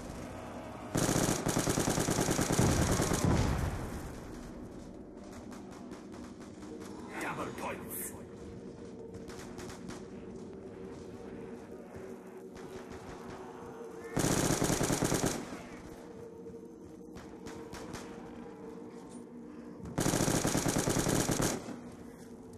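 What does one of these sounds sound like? A gun fires in rapid bursts, loud and close.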